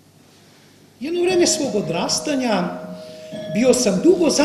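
A man speaks with animation in a large, echoing hall.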